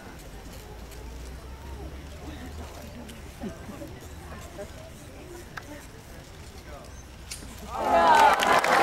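A crowd talks quietly in the background.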